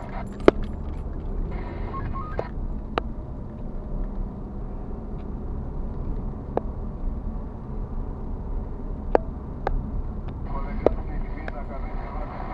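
The car's interior rattles and clicks over bumps.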